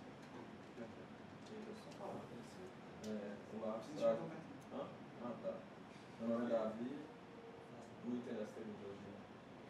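A young man speaks calmly in a room, a little way off.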